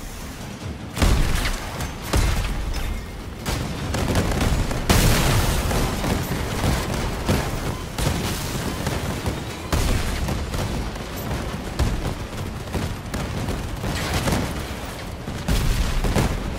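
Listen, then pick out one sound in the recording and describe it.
Loud explosions boom in quick bursts.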